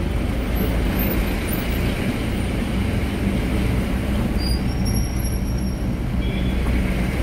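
An engine drones inside a moving tempo van.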